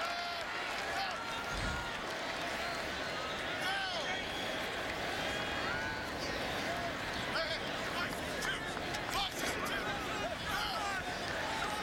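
A large crowd cheers and roars throughout in a stadium.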